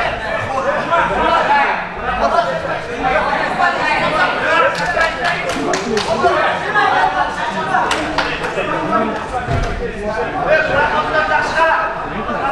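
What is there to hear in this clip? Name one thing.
Bare feet thump on a padded mat.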